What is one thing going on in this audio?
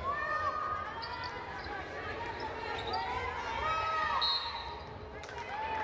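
A basketball thumps on the floor.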